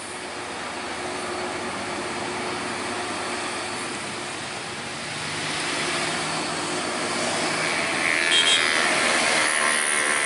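Heavy truck engines rumble and strain as they climb past up close.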